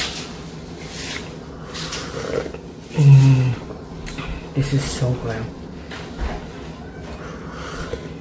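A young woman sips a hot drink with a soft slurp.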